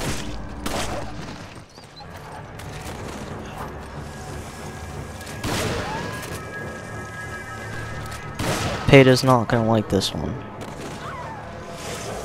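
A handgun fires sharp shots.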